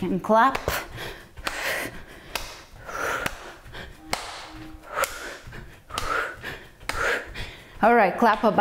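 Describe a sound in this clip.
Bare feet thump and shuffle on a wooden floor.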